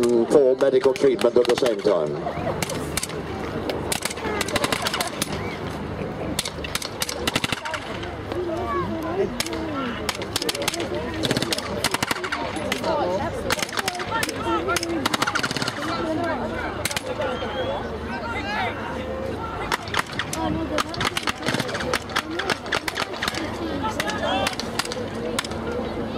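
Rifles fire blank shots in bursts and single cracks, outdoors at a distance.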